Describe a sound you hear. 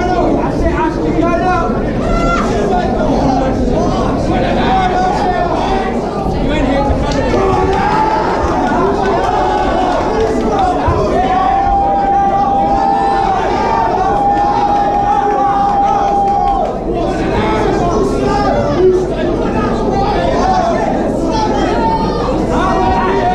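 A crowd shouts and cheers loudly all around.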